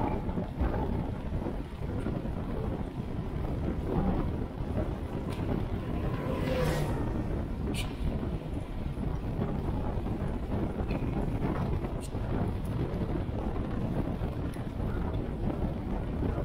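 Wind rushes loudly past a fast-moving bicycle.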